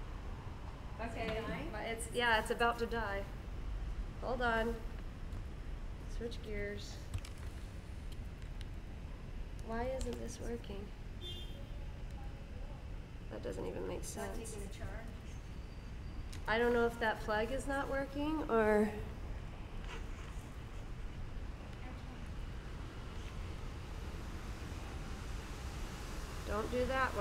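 A woman talks close by in short bursts, with animation.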